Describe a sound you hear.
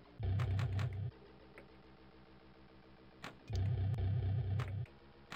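A pinball machine plays bursts of bouncy electronic sound effects.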